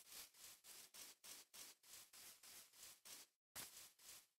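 Footsteps rustle on grass in a quick, steady rhythm.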